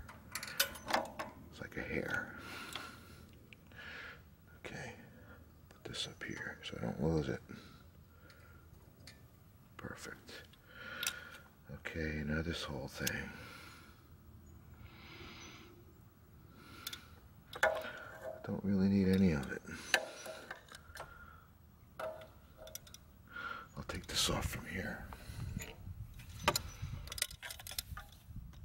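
Metal engine parts click and rattle as they are handled up close.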